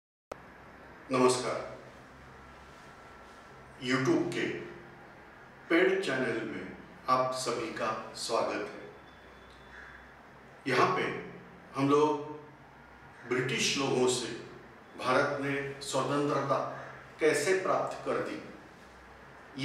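A man speaks clearly and steadily, close to a microphone, with short pauses.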